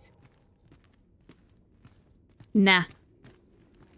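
Footsteps scuff softly on stone.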